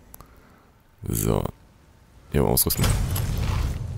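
A short rising chime sounds twice.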